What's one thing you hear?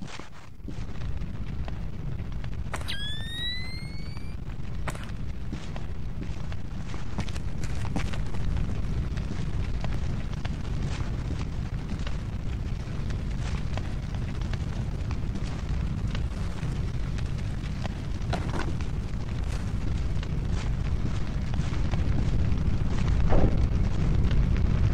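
Fire burns with a low, steady roar.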